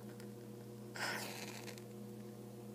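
A match strikes and flares.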